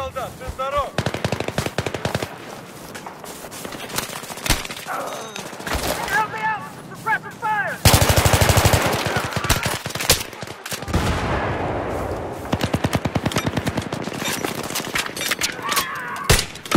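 A rifle fires rapid bursts of gunshots close by.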